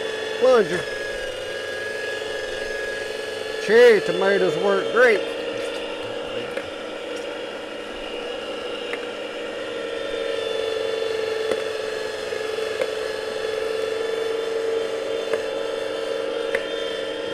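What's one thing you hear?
An electric food strainer's motor hums steadily.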